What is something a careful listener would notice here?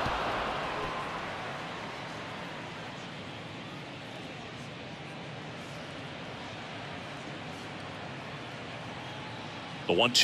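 A large crowd murmurs steadily in a big open stadium.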